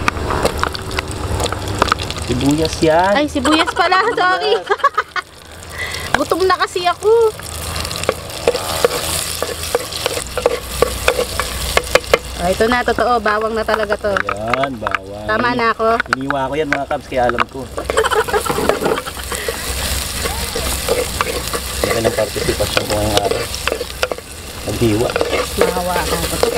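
Onions sizzle in hot oil in a pot.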